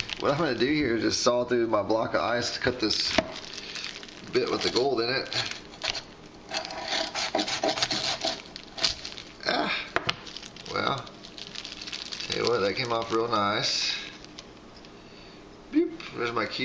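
Plastic wrap crinkles in a person's hands.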